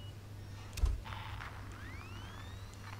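An electronic tracker chirps with rising beeps.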